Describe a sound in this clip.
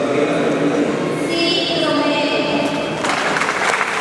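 A young man speaks into a microphone in a large echoing hall.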